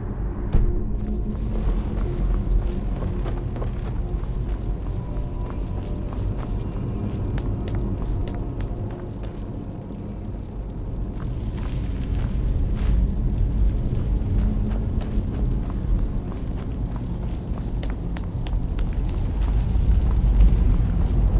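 Magic flames crackle and hiss softly.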